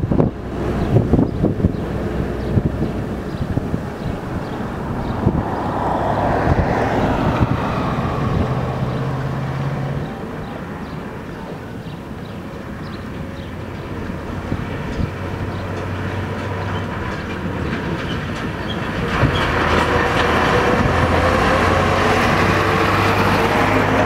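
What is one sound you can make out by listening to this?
Tyres crunch on a gravel road.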